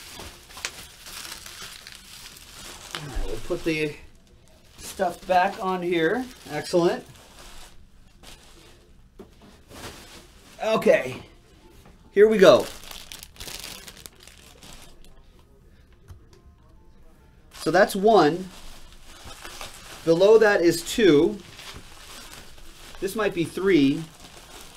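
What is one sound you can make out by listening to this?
Bubble wrap and plastic wrapping crinkle and rustle under hands.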